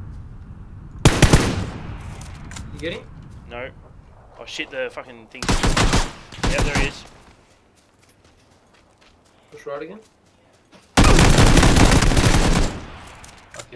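Gunfire rattles in loud rapid bursts.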